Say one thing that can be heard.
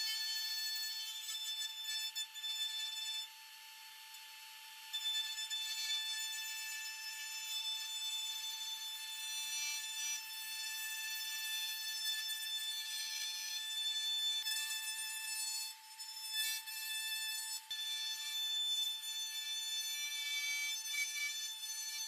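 A router whines at a sped-up pitch as it cuts into wood.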